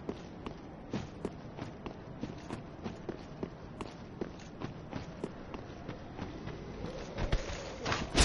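Armoured footsteps thud steadily on the ground.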